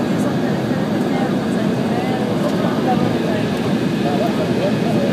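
A jet engine roars steadily inside an airplane cabin.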